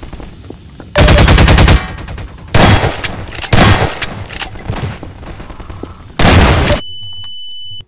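Gunshots fire in loud rapid bursts.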